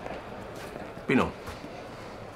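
An elderly man speaks briefly in a low voice.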